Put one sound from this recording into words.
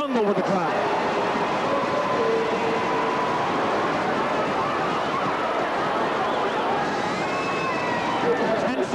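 A large crowd cheers and murmurs steadily in a big echoing arena.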